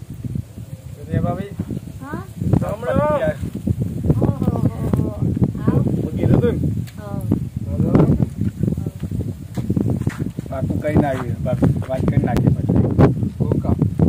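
Young men talk with animation nearby outdoors.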